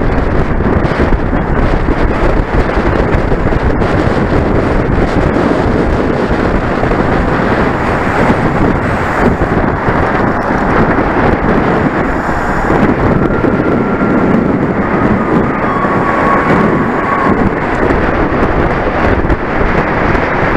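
Strong wind rushes loudly past the microphone.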